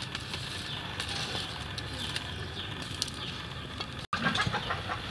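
A stick scrapes and pokes through burning coals.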